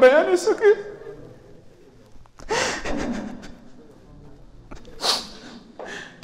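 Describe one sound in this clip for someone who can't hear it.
A man sobs and sniffles into a microphone.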